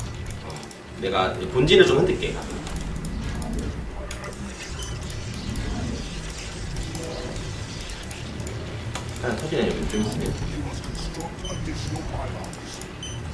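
Short video game sound effects and clicks play throughout.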